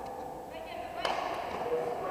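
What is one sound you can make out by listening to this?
A bat strikes a ball with a sharp crack.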